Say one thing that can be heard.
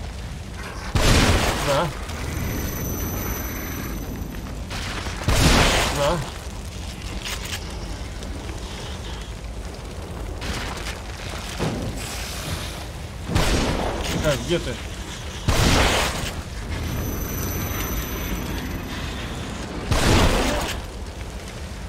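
A shotgun fires with loud booming blasts.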